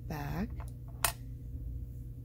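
Small hard pendants click softly against fingers and each other.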